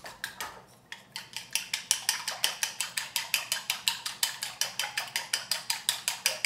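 Chopsticks whisk eggs, tapping quickly against a bowl.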